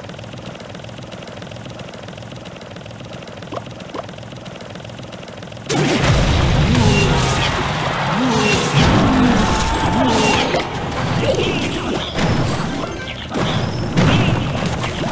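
Game sound effects of battle clash and pop.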